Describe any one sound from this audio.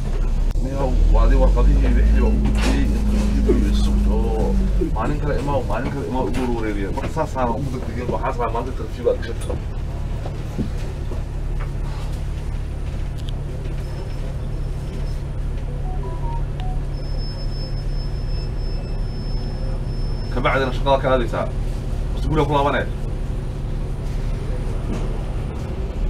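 A bus engine rumbles low and steadily from close by.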